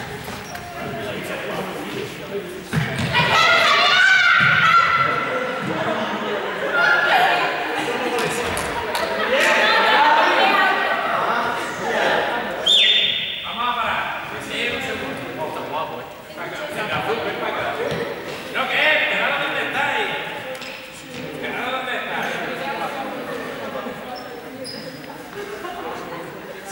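Young people shout and call out to each other in a large echoing hall.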